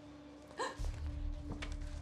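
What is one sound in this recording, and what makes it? A woman gasps.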